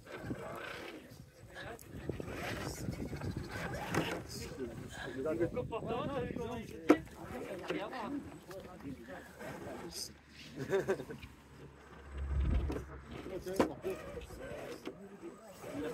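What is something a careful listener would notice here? Plastic tyres knock and scrape over wood and stones.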